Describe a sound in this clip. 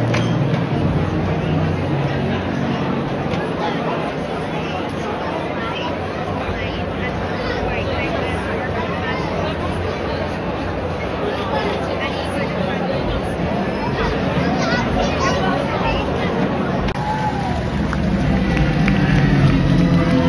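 A large crowd chatters and sings in a big echoing arena.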